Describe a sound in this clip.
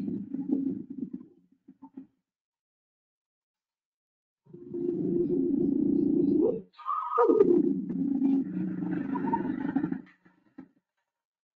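Lions growl and snarl, heard as a recording played over an online call.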